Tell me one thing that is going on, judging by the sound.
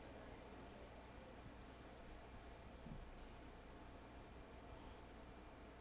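A man speaks slowly into a microphone in a large echoing hall.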